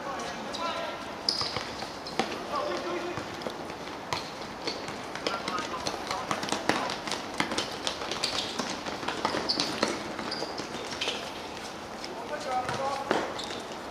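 Sneakers squeak on the court surface.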